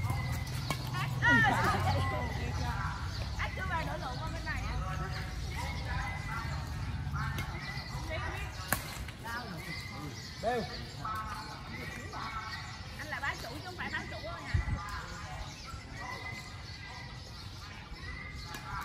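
Adult players call out to each other outdoors.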